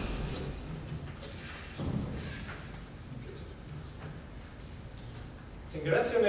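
A middle-aged man speaks briefly into a microphone.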